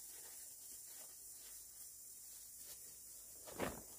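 A plastic bag rustles and crinkles as it is handled.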